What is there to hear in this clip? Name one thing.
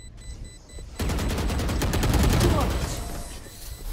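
Rapid gunfire rattles from a rifle.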